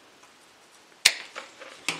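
Garden shears snip through a plant stem.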